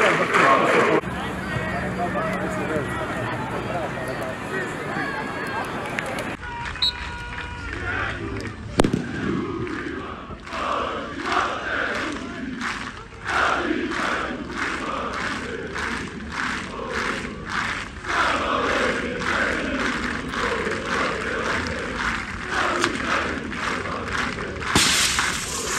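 A large crowd of fans sings and chants loudly outdoors.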